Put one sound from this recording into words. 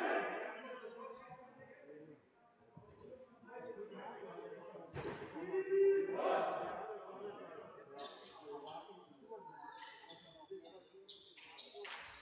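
Men talk and call out, echoing through a large hall.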